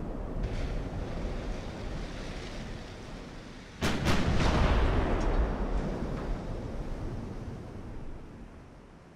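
Waves wash steadily over open sea.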